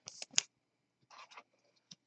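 A trading card rustles softly as a hand handles it.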